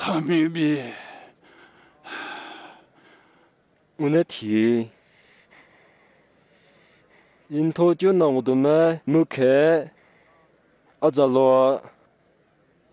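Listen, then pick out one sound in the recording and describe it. A man sings out loudly in short, drawn-out phrases outdoors.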